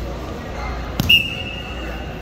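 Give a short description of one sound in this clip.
A referee slaps the mat.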